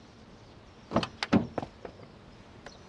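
A car door opens and shuts with a clunk.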